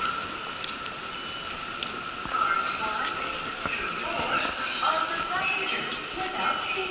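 Footsteps tap on a hard floor in a large echoing hall.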